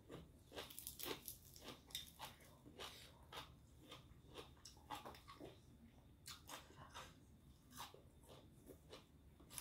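Fresh herb leaves crackle and snap between fingers.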